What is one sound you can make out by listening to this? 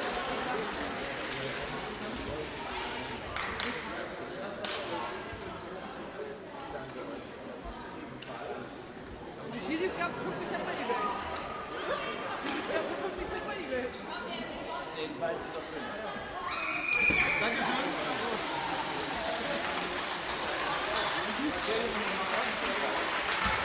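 Young women chatter and call out in a large echoing hall.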